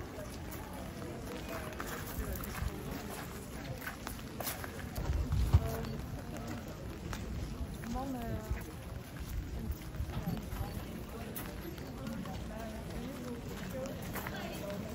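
A crowd of men and women chat nearby outdoors.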